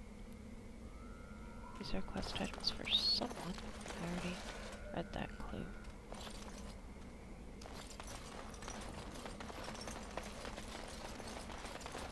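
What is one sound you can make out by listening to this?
Footsteps shuffle on stone as a small group walks.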